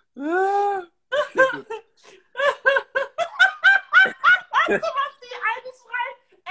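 A young woman talks with animation over an online call.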